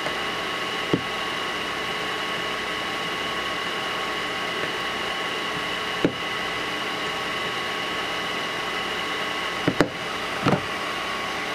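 A circuit board clicks and taps as it is handled.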